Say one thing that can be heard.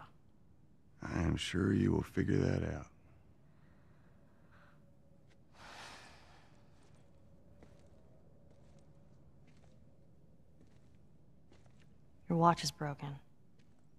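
A man answers in a low, tired voice.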